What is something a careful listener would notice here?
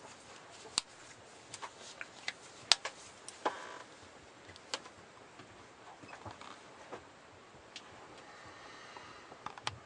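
Small clicks and soft rustles come from a watch being handled with cloth gloves.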